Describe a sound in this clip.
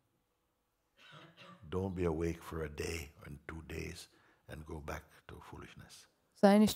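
An elderly man speaks calmly and slowly into a nearby microphone.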